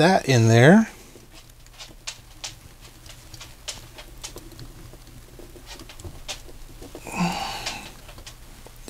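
Small plastic toy parts click and tap together as they are handled.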